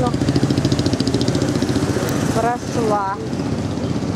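A motor scooter hums past.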